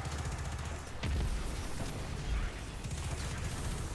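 Energy blasts burst and boom loudly.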